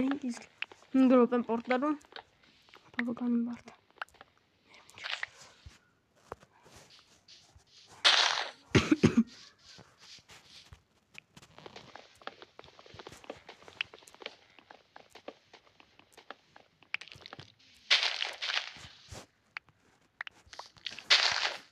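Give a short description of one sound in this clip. Leaves rustle and crunch in quick, repeated bursts as they are broken.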